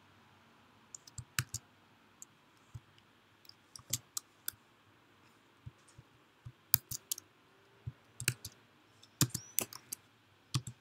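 Keys clatter as someone types quickly on a keyboard.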